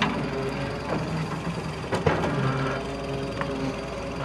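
An excavator bucket scrapes and thuds into the earth.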